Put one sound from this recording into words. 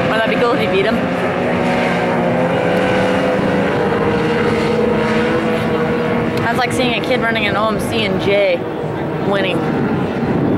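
A personal watercraft engine whines across the water and fades into the distance.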